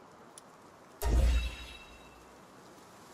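A bright game chime rings out with a deep thump.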